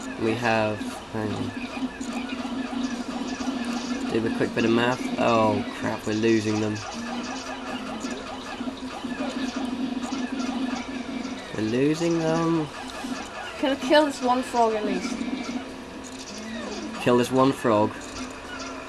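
Small cartoon creatures chirp and squeak in quick, high bursts.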